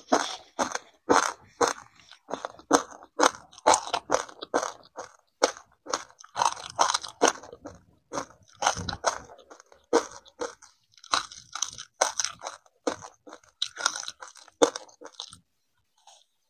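A metal spoon scoops and scrapes through dry grains, rustling and crunching.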